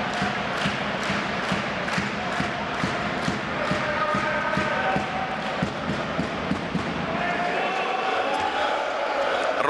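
A large crowd chants and cheers in an echoing indoor arena.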